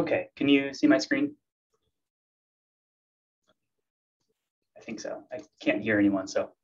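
A man speaks calmly into a microphone, heard through an online call.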